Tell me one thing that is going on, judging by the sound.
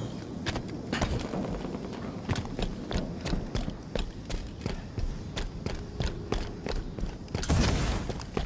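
Footsteps tap rapidly on a hard floor.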